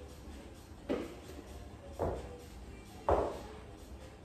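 Dumbbells clank against the floor.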